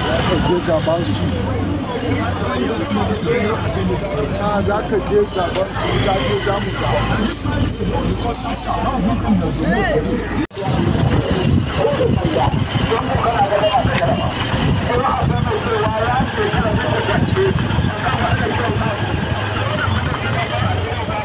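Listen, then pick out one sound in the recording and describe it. A crowd of men talks and shouts nearby outdoors.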